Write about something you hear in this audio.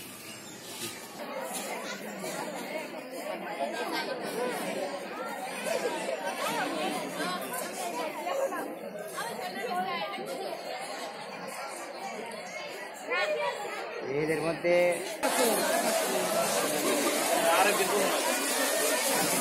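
A large crowd of girls chatters outdoors.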